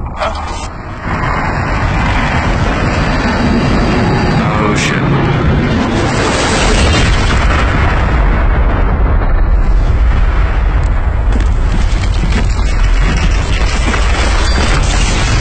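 A huge explosion roars and rumbles on and on.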